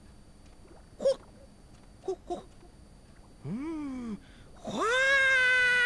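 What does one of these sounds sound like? A cartoonish creature lets out sliding, squeaky cries.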